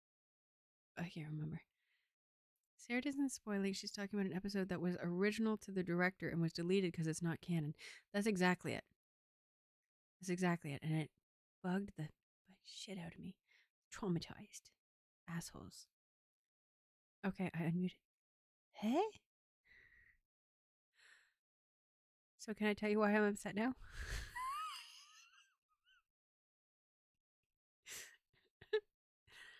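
A woman talks casually and with animation into a close microphone.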